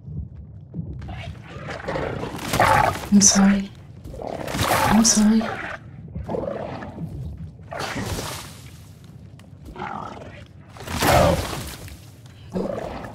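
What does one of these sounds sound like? A creature snarls and screeches close by.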